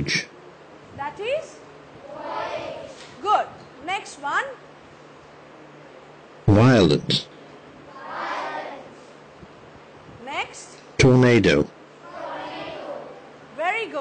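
A woman pronounces words aloud clearly.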